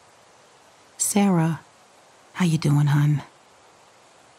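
A teenage boy asks a question in a friendly voice.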